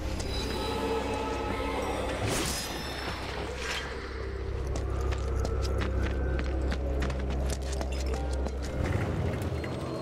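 Footsteps run quickly across hard ground.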